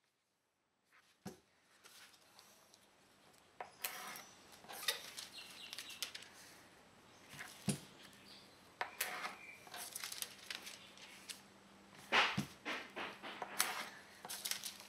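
Paper and foil rustle and crinkle as hands handle them.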